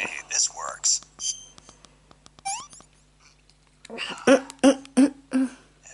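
A handheld game plays short electronic chimes and bleeps through a small speaker.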